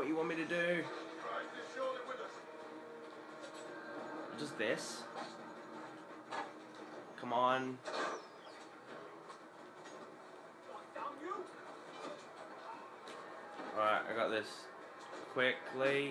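Video game sound effects play from a television speaker.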